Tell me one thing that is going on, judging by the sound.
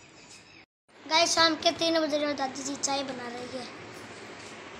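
A young boy talks close by, with animation.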